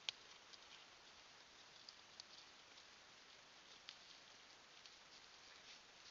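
A black-tailed deer crops grass.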